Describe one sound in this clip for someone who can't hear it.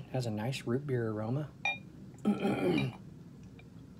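Liquid pours and fizzes into a glass.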